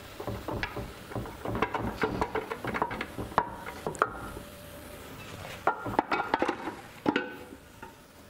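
Metal parts clank and knock as a gearbox housing is handled.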